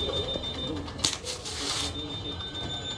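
A newspaper rustles as it is picked up and unfolded.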